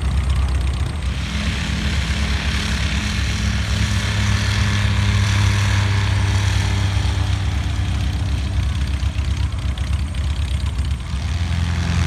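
A light aircraft takes off in the distance with a rising engine roar.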